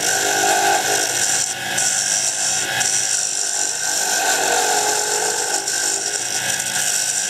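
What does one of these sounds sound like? A hand-held turning tool cuts into spinning hardwood on a lathe.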